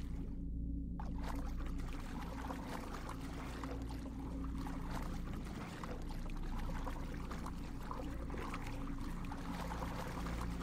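Water bubbles and churns as a swimmer moves underwater.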